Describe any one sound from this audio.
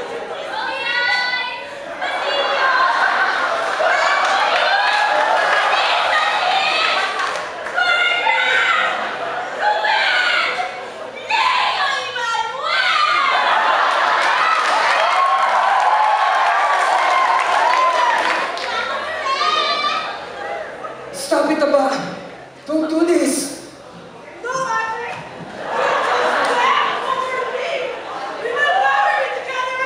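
Young women sing loudly in a large hall.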